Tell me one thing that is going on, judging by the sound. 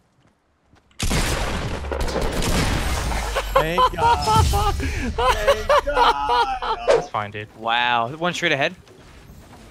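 A young man shouts excitedly into a close microphone.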